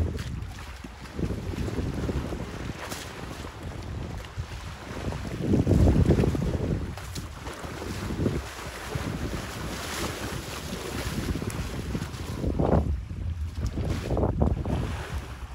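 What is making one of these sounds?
Elephants splash and wade through muddy water.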